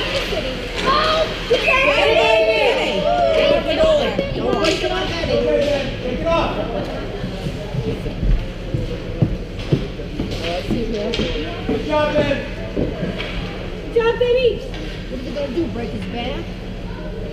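Children shout and call out in a large echoing rink.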